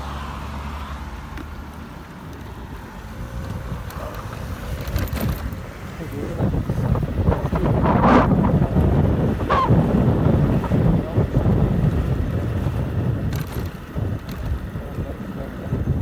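Wind rushes past loudly, rising as the scooter speeds up.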